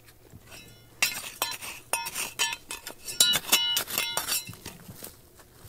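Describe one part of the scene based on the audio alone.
A digging tool scrapes and knocks through stony soil.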